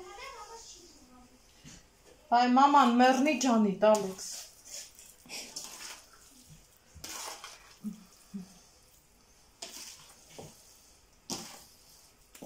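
Raw chicken pieces squelch and slap softly as hands toss them.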